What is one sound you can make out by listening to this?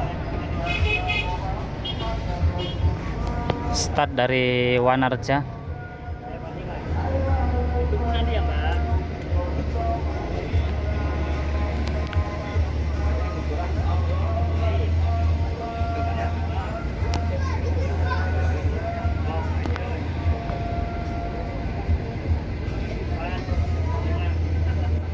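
Motorbikes and cars pass by on the road.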